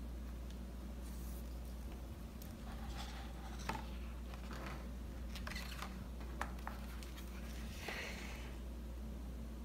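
Paper pages rustle and flap as a book is opened and turned.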